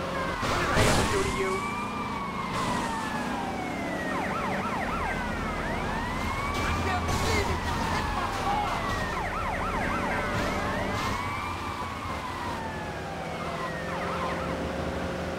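A police siren wails up and down.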